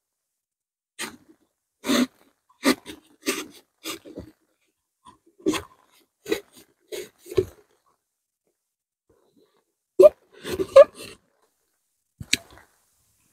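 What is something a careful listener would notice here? A knife scrapes and shaves wood in short strokes.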